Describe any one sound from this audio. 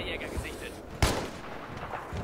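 A sniper rifle fires a single sharp shot.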